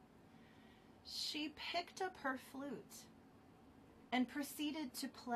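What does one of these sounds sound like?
A woman speaks calmly and warmly, heard close through a microphone on an online call.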